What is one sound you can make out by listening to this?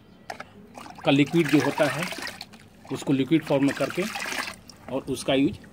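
Water sloshes and swirls as a hand stirs it in a bucket.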